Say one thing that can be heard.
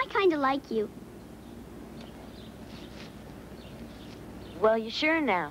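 A child speaks brightly and expressively, close by.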